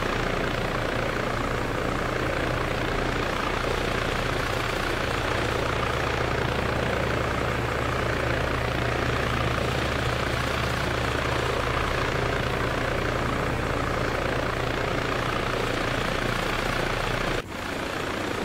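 A helicopter's rotor thumps and its engine roars steadily.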